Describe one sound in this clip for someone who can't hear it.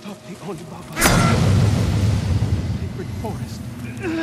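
A sudden magical blast bursts out with a deep rumble.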